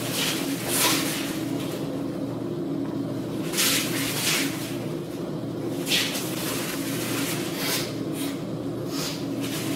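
Heavy cotton uniforms swish and rustle with sharp movements.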